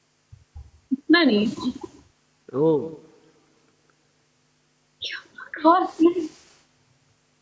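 A young woman laughs softly over an online call.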